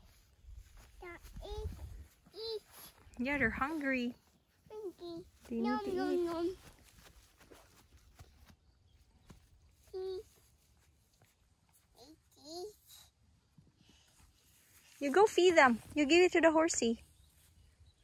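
A toddler babbles and squeals excitedly close by, outdoors.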